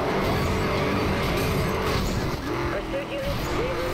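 A car crashes through a wooden barrier with a loud splintering smash.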